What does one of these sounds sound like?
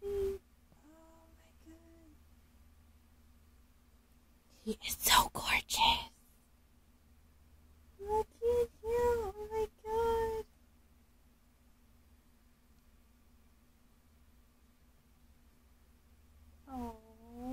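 A baby fusses and cries close by.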